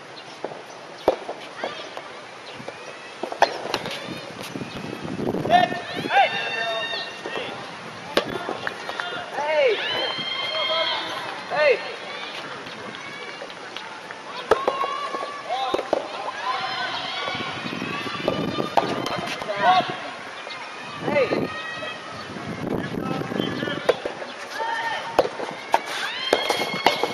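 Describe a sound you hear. Spectators call out and cheer outdoors.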